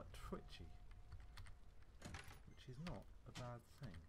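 A metal case clicks open.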